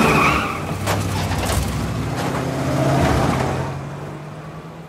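A car engine rumbles as a car drives past.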